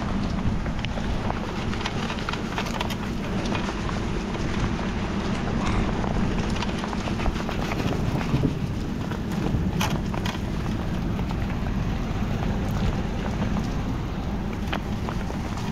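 A stiff brush scrubs a muddy metal surface.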